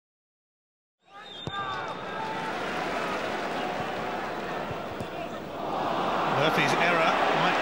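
A large stadium crowd murmurs and chants, swelling louder.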